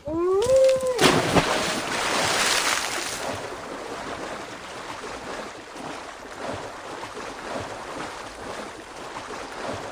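Water splashes and sloshes as something wades through a river.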